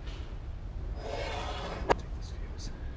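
A wooden drawer slides shut with a knock.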